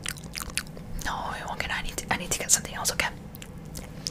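A young woman whispers closely into a microphone.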